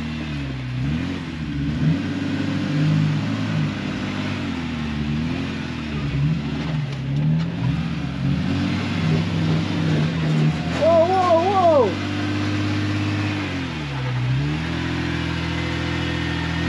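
An off-road vehicle's engine rumbles and revs as it climbs over rocks.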